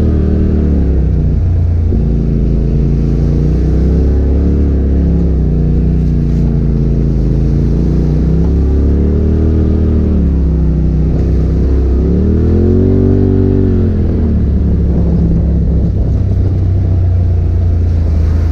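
A vehicle engine drones close by, revving up and down.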